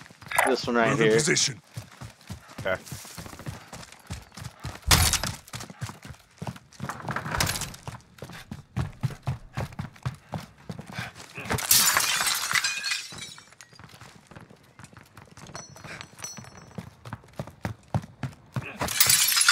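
Footsteps thud quickly on the ground and on wooden floors and stairs.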